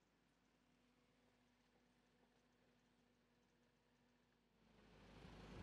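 A car engine idles quietly nearby.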